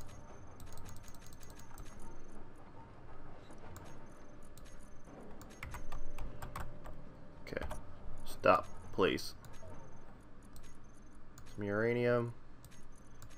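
Soft game interface clicks tick repeatedly.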